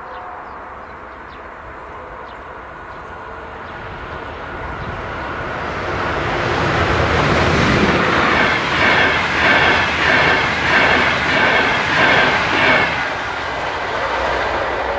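A level crossing bell rings steadily.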